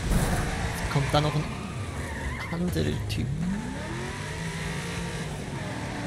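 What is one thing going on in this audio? Tyres screech as a car slides sideways.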